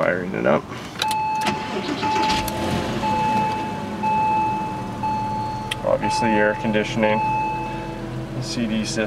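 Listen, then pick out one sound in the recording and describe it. A car's warning chime beeps in a steady, repeating pattern.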